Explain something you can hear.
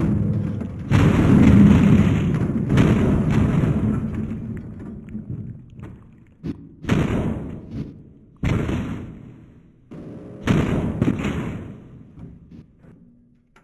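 Heavy thuds and splatters land in bursts.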